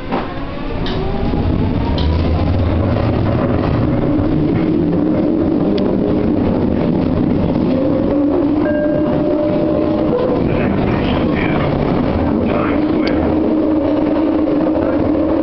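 A train starts moving and rumbles steadily, with a rising whine of its motors.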